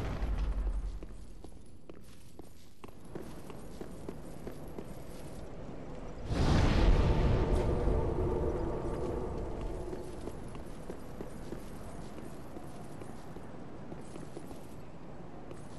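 Armoured footsteps clatter on stone.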